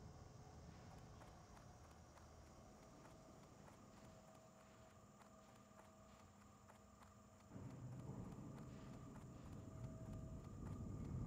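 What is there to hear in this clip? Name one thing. Footsteps patter quickly and steadily on a hard floor.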